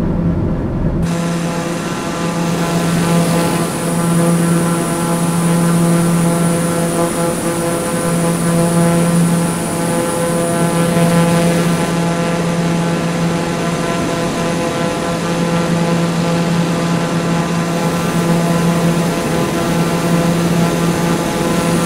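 A propeller engine hums loudly and steadily.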